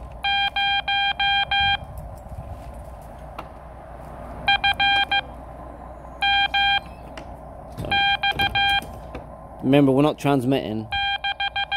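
Morse code beeps sound in short bursts from a radio.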